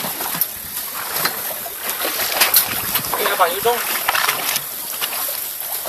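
Waves splash against the side of a boat.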